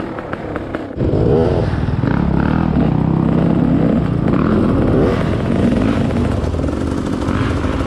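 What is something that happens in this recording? Another dirt bike engine idles nearby.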